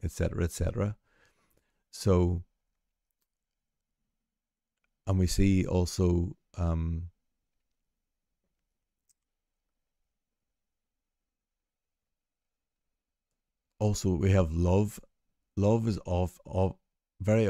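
A man talks calmly and thoughtfully, close to a microphone, with long pauses.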